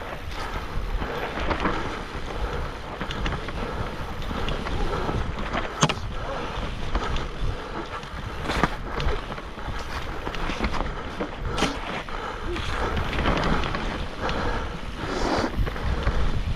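A bike's frame rattles and clanks over bumps.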